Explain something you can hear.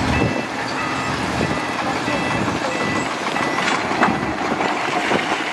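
Rocks and dirt rumble and clatter as a dump truck tips its load.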